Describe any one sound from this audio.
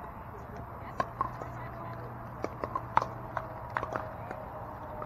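Paddles hit a ball with sharp, hollow pops.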